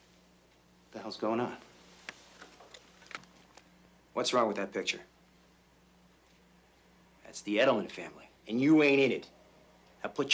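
A man answers calmly up close.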